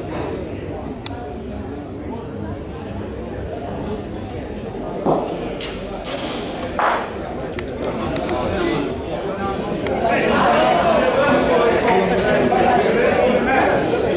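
A crowd of spectators murmurs and chatters in an echoing hall.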